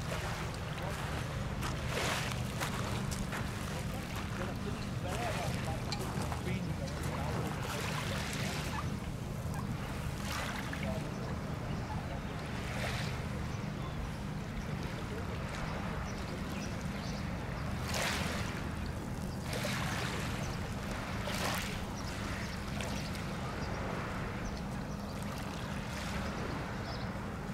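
Small waves lap gently against a pebbly shore.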